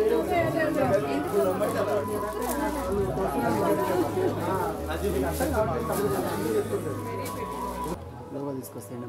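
A woman talks with animation.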